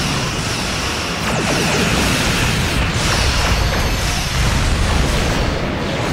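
Explosions boom repeatedly.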